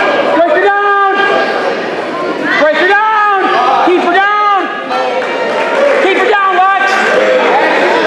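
Spectators shout and cheer loudly in an echoing gym.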